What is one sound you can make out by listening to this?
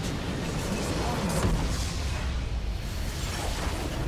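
A structure in a video game explodes with a deep, booming blast.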